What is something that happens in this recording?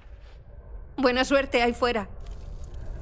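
A young woman speaks calmly up close.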